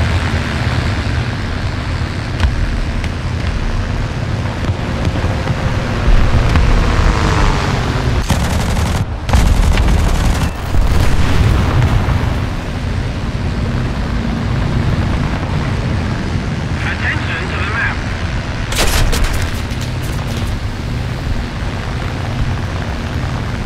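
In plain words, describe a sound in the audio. Aircraft engines drone steadily throughout.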